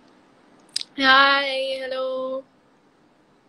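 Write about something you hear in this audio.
A young woman speaks in a long drawn-out sung tone close by.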